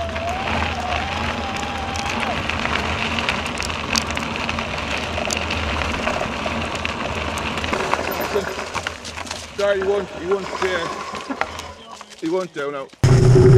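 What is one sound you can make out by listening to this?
Bicycle tyres roll and crunch over a frosty dirt path.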